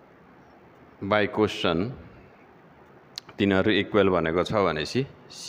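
A middle-aged man speaks calmly and clearly into a headset microphone.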